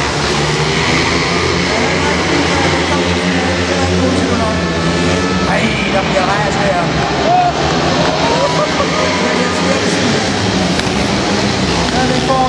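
Motorcycle engines roar and rev loudly.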